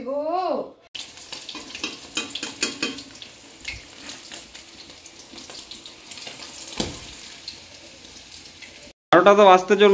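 A metal spatula scrapes and clinks against a pan.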